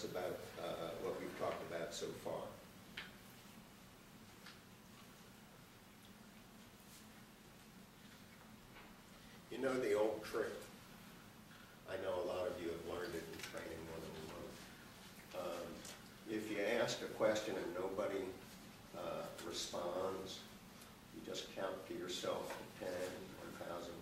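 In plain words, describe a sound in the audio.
A middle-aged man speaks calmly to an audience.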